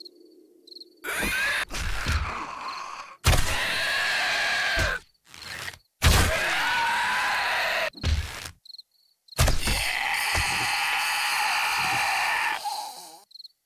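Heavy blows thud against a body, again and again.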